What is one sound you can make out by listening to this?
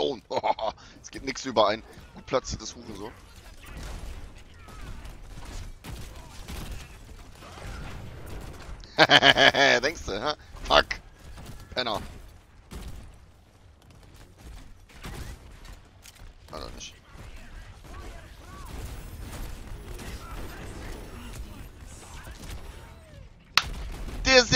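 A gun fires in rapid bursts of shots.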